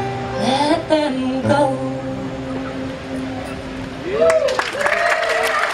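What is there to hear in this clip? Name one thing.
A young woman sings through a loudspeaker.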